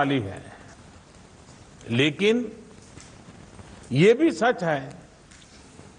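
An elderly man speaks calmly and deliberately into a microphone, with pauses between phrases.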